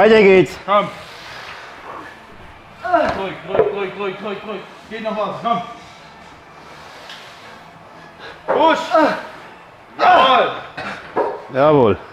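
A young man groans and strains loudly with effort.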